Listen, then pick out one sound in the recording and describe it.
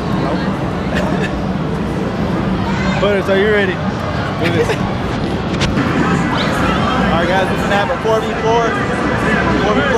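Young men laugh and talk loudly close by.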